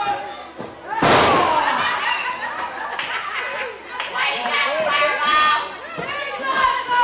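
A crowd shouts and cheers around the ring.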